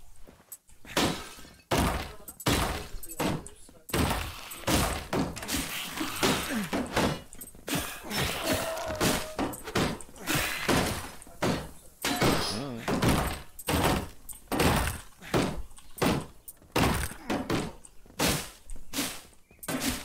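Heavy blows strike again and again in a scuffle.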